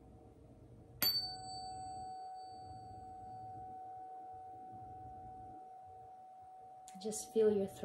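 A tuning fork rings with a clear, steady tone that slowly fades.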